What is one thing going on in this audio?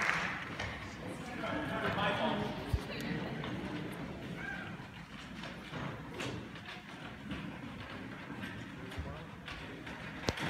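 Young men and women murmur and chatter softly in a large echoing hall.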